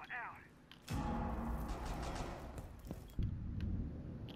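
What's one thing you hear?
Rapid gunshots crack in a video game.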